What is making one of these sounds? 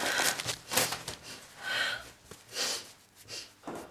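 A young woman sniffles and breathes shakily close by.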